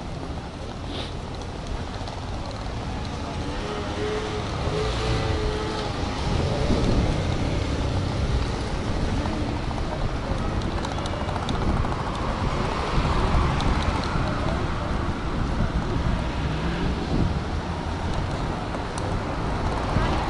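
Footsteps tap on a pavement outdoors.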